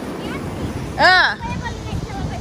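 A young girl squeals excitedly nearby.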